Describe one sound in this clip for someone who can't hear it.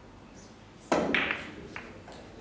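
A cue ball smashes into a rack of pool balls with a loud crack.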